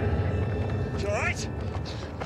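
A young woman cries out in fright.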